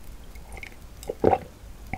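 A woman gulps a drink close to a microphone.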